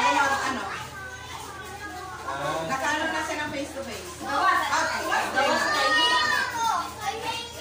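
Several women and men talk and chatter close by.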